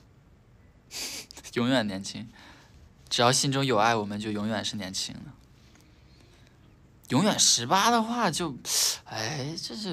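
A young man sings softly, close up.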